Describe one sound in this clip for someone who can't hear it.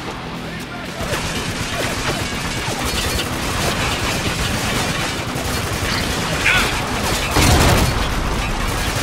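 Gunfire rattles in bursts nearby.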